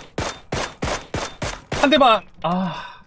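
Rifle shots fire in quick succession.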